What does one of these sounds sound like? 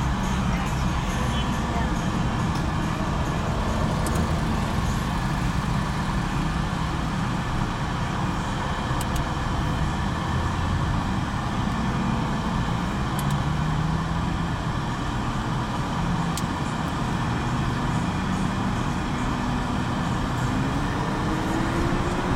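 A car engine rumbles steadily from inside the vehicle.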